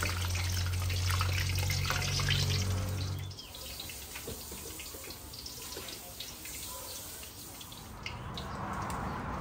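Metal tongs clink and scrape against a pan.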